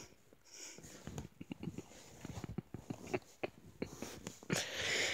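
A young man chuckles softly close by.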